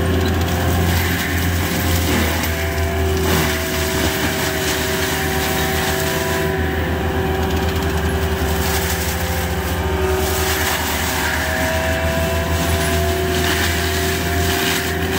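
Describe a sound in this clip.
A tracked machine's diesel engine roars steadily close by.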